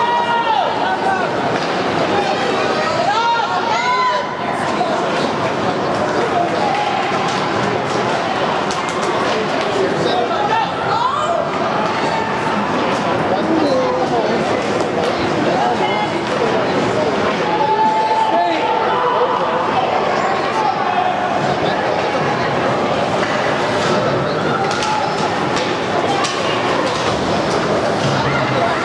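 A crowd of spectators chatters and shouts nearby in an echoing rink.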